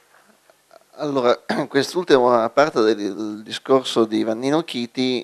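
An elderly man speaks calmly into a microphone, heard through loudspeakers.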